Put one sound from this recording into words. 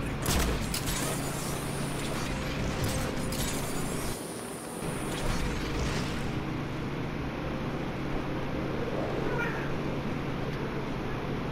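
Wind rushes loudly and steadily.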